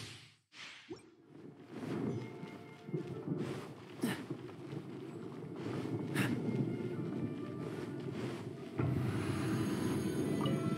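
Quick footsteps patter on a hard stone floor.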